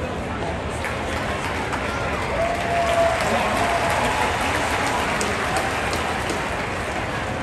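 A stadium crowd cheers louder, then settles.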